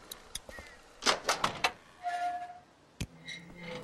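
A heavy metal door clanks open.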